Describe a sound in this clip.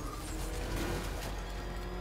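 A vehicle smashes through an obstacle with a loud crash and scattering debris.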